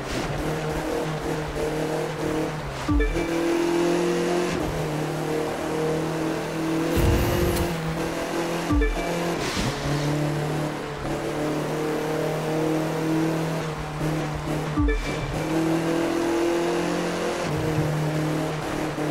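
Tyres hiss over a snowy road.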